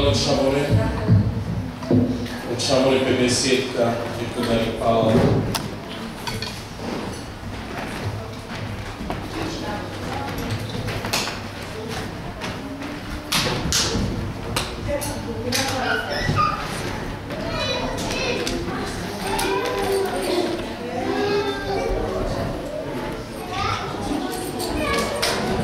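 A man speaks into a microphone over a loudspeaker in an echoing hall.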